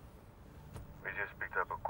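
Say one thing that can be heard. A man speaks into a phone.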